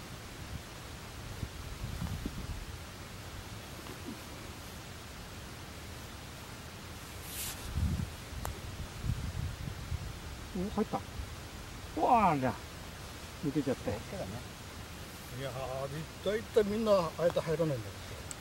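A golf putter taps a ball.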